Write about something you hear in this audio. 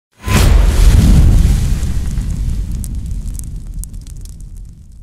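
Flames whoosh up with a loud roar, then crackle as they slowly die down.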